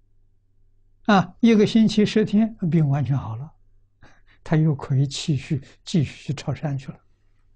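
An elderly man speaks calmly and warmly into a microphone, close by.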